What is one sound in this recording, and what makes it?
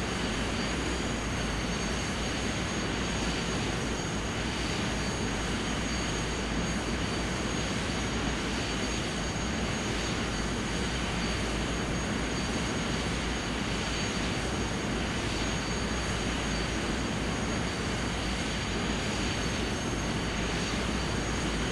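Jet engines whine and roar steadily.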